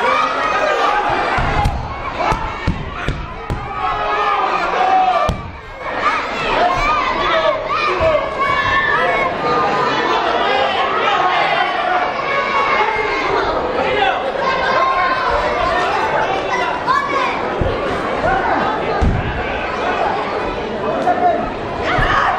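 A large crowd shouts and cheers in an echoing hall.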